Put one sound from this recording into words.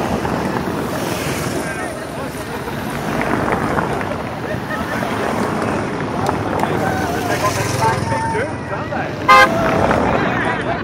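A crowd of people chatters in the open air.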